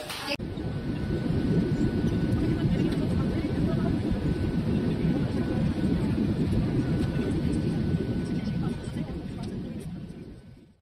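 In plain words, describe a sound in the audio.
A jet's engines roar steadily inside an airplane cabin, then fade away.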